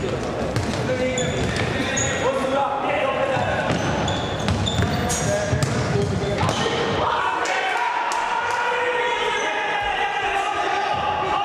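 Sneakers squeak sharply on a hard indoor floor.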